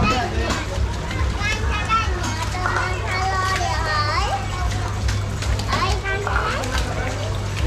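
Fish splash and thrash in shallow water.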